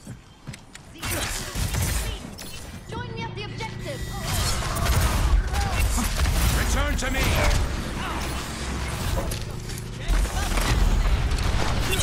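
Electronic energy blasts whoosh and crackle in quick bursts.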